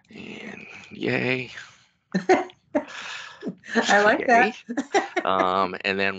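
A woman laughs, heard over an online call.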